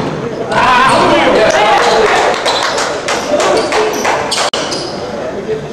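Men shout and call out across a large echoing gym.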